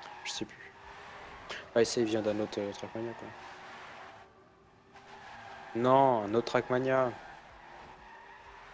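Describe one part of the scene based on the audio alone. Racing car engines whine at high revs.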